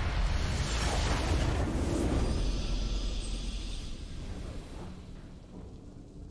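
A booming, triumphant game fanfare swells and then slowly fades.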